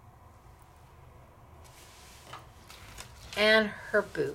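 A stiff card taps softly as it is set down on a table.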